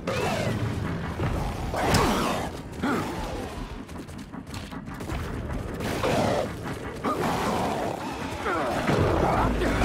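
Monsters snarl and screech.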